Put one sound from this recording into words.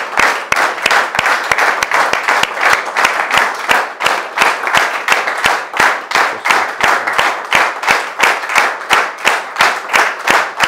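A woman claps her hands close by.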